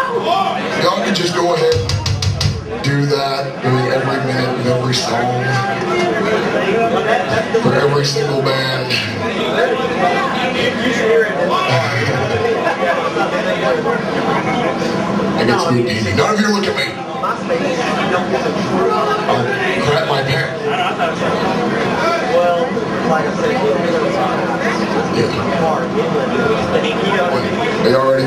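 A metal band plays loud distorted guitars and pounding drums in a large echoing room.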